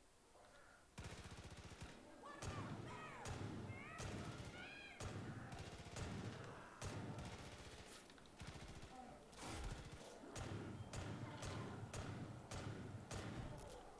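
A bear growls and snarls close by.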